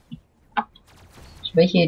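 A laser gun fires with a short electric zap.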